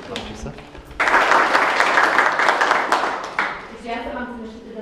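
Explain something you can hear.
People applaud loudly.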